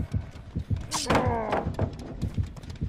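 A heavy wooden pallet slams down with a loud crash.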